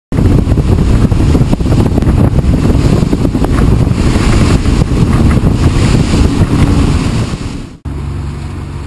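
Wind roars and rumbles loudly past a speeding boat.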